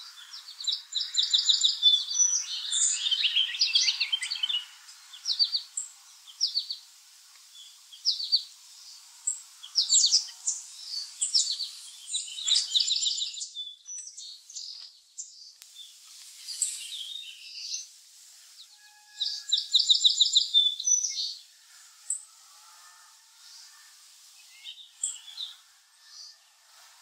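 Birds chirp and trill close by in quick bursts.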